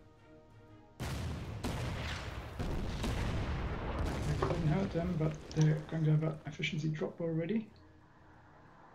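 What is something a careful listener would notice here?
Gunfire and explosions boom.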